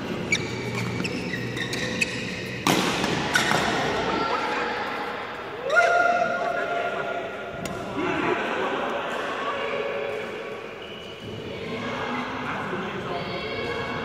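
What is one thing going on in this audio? Young men talk and call out to each other in an echoing hall.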